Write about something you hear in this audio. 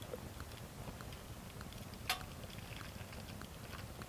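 Water pours from a kettle into a cup.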